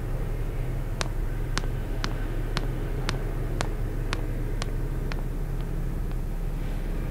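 Footsteps click on a hard floor, echoing in a large hall.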